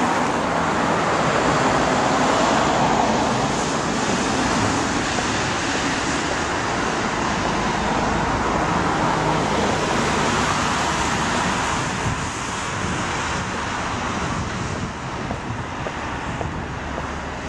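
Car tyres hiss by on a wet road.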